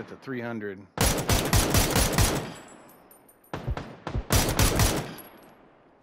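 A rifle fires loud, sharp shots that echo.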